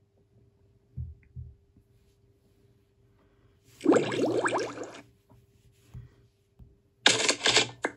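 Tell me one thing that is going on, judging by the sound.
A finger taps on a glass touchscreen.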